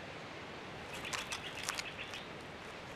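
Small birds chirp and twitter nearby.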